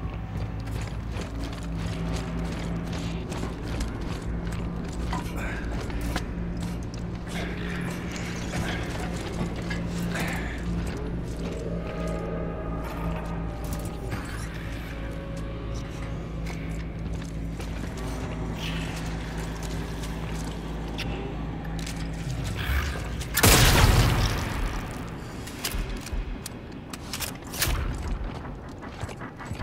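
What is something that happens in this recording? Heavy metal boots clank on the floor.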